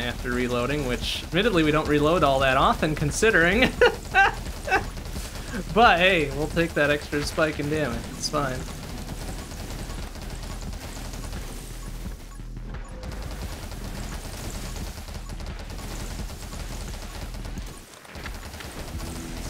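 Video game weapons fire in rapid bursts.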